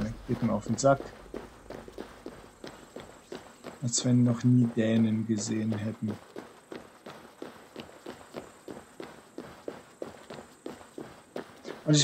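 Footsteps tap quickly on stone paving.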